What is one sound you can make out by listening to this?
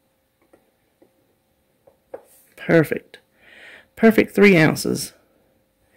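Liquid pours from a cup into a glass jar.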